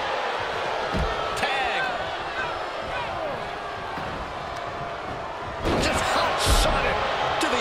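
Heavy bodies thud onto a wrestling ring.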